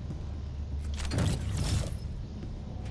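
A loud whoosh sweeps past.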